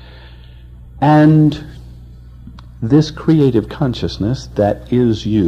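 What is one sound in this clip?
An elderly man speaks slowly and calmly, heard through a microphone.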